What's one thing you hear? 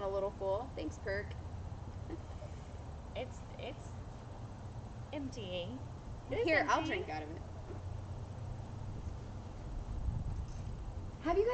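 Young women talk and laugh nearby, heard through a microphone.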